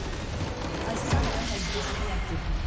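A large structure crumbles and explodes with a heavy rumble.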